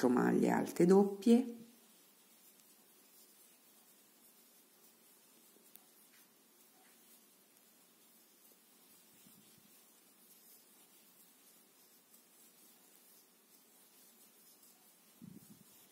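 A crochet hook softly rustles through yarn.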